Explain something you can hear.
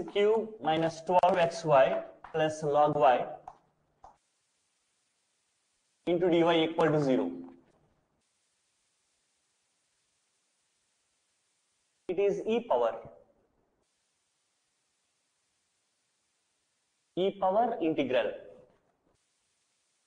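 A man speaks calmly and clearly, close by, in short bursts.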